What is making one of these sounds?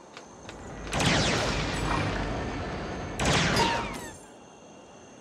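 A blaster fires rapid shots.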